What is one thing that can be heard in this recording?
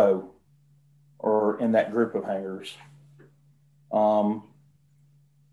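An adult speaks in short bursts over an online call.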